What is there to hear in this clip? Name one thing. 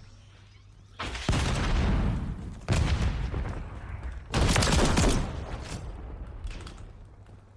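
Rapid gunfire bursts out in short volleys.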